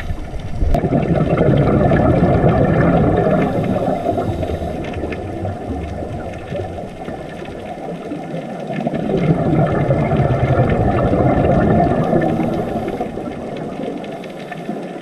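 Air bubbles from a diver's breathing gurgle and rumble loudly underwater in bursts.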